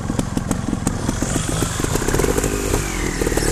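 A motorcycle engine revs as the bike rides over a rough trail.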